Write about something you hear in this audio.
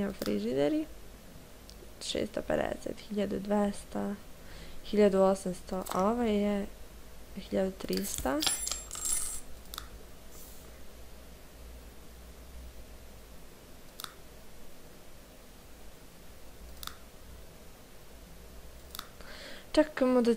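A young woman talks casually into a headset microphone, close by.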